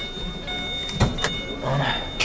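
A car's hood latch clicks open.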